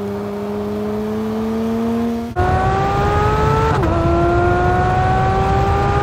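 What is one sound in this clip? A sports car engine roars at high revs, climbing steadily in pitch.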